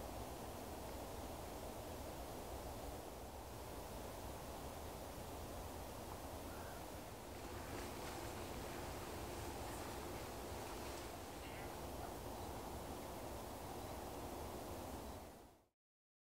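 Wind blows softly across open ground.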